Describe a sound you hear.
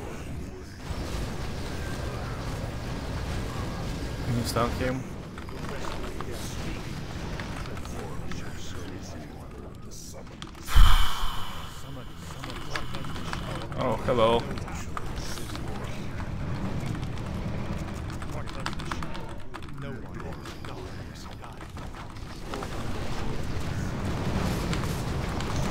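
A young man talks into a close microphone, with pauses.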